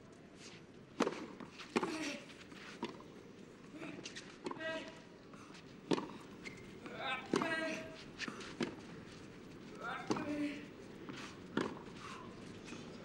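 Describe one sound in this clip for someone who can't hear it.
A tennis ball is struck back and forth with sharp pops and bounces.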